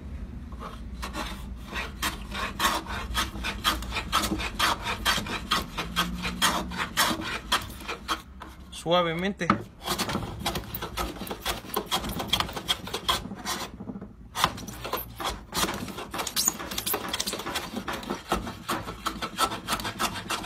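A hand plane shaves wood in quick, rasping strokes.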